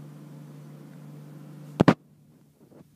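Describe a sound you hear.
A finger taps on a phone's touchscreen.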